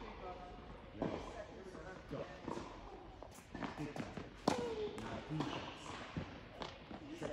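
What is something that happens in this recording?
A tennis racket strikes a ball with sharp pops in an echoing hall.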